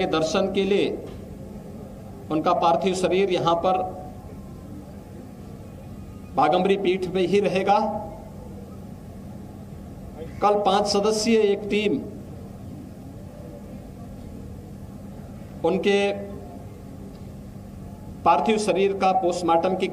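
A man speaks into a microphone in short bursts with pauses.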